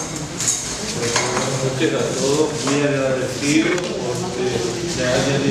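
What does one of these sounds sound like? An elderly man speaks calmly into a microphone over loudspeakers.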